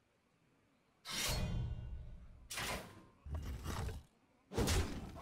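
Magical whooshing and booming effects play from a card game.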